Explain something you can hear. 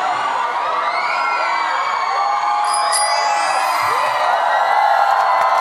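A large crowd of young women screams and cheers loudly.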